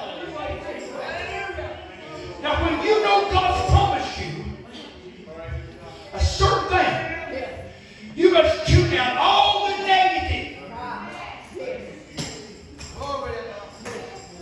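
An elderly man preaches loudly and with fervour through a microphone and loudspeakers, in an echoing hall.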